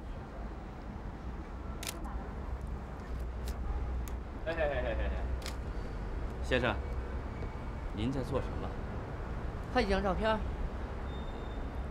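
A young man answers briefly.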